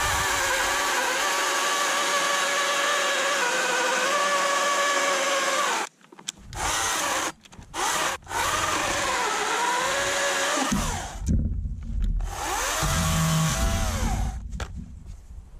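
A chainsaw engine roars loudly while cutting through a log, then idles and revs.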